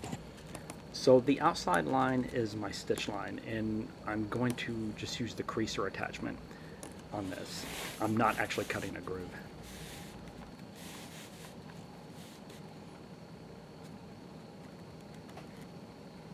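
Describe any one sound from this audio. A stitching groover cuts a groove into leather.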